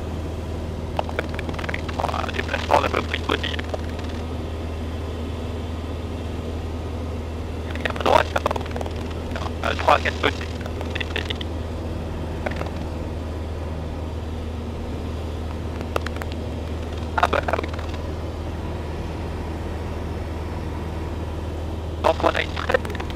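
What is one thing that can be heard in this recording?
A man speaks in short bursts through a headset intercom.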